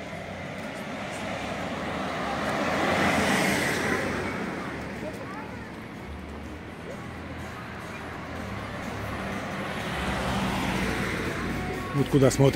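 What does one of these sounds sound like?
A car drives past close by with a rising and fading rush.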